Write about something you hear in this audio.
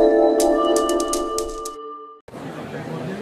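A short musical jingle plays.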